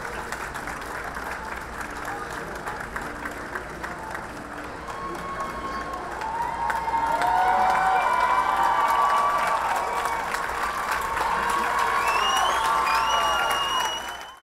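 A marching band plays brass chords across a large outdoor stadium, swelling louder.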